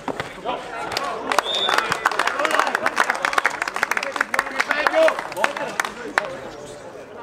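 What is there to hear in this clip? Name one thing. A crowd of spectators cheers and claps nearby outdoors.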